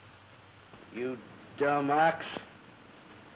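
A young man speaks up nearby.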